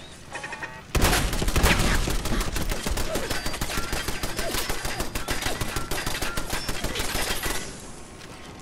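A machine gun rattles off a long, rapid burst.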